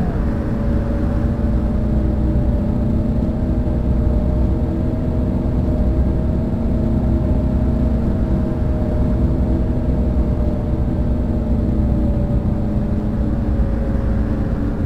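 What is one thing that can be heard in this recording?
A bus engine hums steadily with a low rumble.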